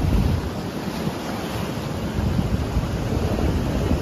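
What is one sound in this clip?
Waves wash gently onto a sandy shore.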